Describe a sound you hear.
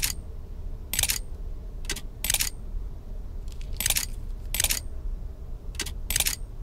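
Metal keys click and clink into place again and again.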